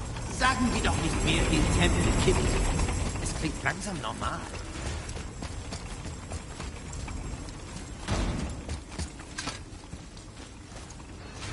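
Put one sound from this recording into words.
Heavy footsteps run across a stone floor.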